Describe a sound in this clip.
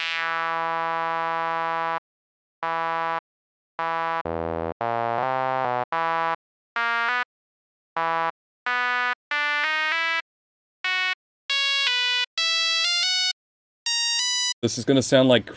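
Synthesizer notes play one after another, rising step by step in pitch.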